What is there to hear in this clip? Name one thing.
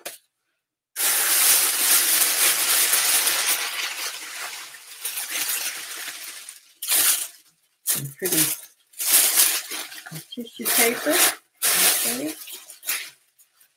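Plastic wrapping rustles and crinkles in a woman's hands.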